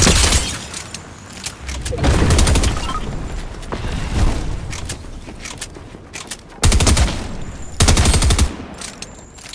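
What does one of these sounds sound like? Game gunfire cracks in short bursts.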